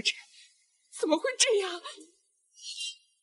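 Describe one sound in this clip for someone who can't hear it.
A young woman speaks in surprise close by.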